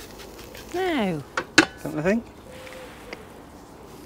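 A grill lid clanks shut.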